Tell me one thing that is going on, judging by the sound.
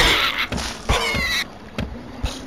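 Wooden blocks crash and clatter as a structure collapses.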